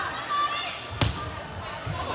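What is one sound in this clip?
A volleyball is served with a sharp smack.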